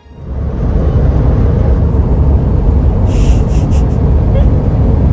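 A car rumbles steadily as it drives along the road.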